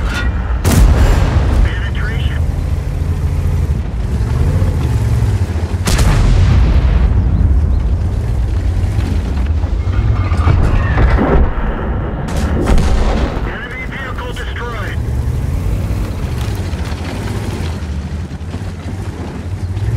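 A tank engine rumbles and whines steadily.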